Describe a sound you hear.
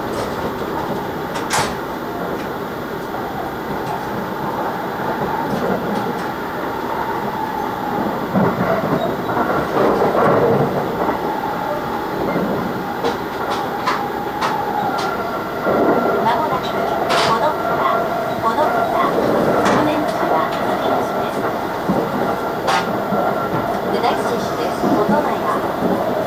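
Train wheels rumble and clatter steadily on the rails.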